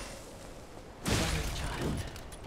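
An explosion bursts with a loud crackle.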